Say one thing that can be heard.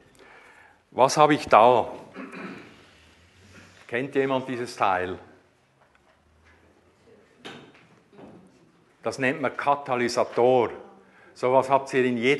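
A middle-aged man talks with animation, close by through a clip-on microphone.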